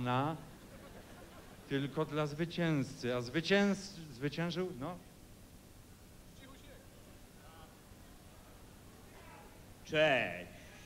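A middle-aged man speaks clearly into a microphone over a loudspeaker in a large hall.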